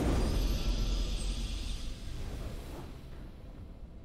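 A video game's victory fanfare rings out and fades away.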